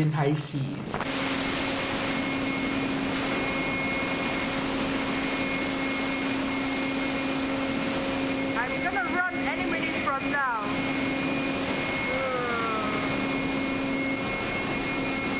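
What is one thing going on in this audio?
A ship's engine hums steadily.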